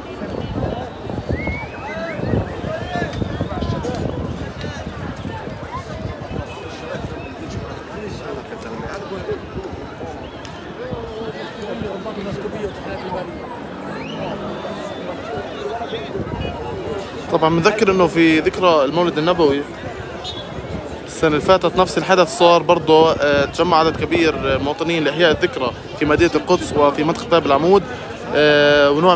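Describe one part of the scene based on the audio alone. A crowd of people talk and murmur outdoors.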